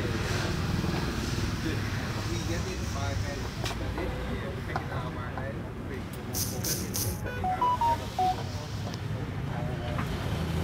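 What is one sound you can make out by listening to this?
Several adults chat nearby in a lively crowd.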